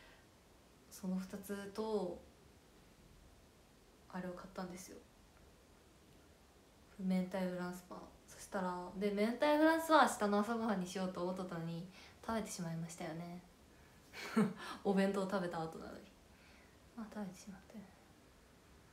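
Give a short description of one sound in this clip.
A young woman talks calmly and close by, heard through a microphone.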